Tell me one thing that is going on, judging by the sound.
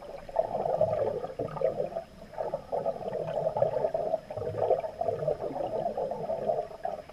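Water churns and gurgles, heard muffled from underwater.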